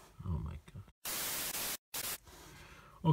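Television static hisses briefly.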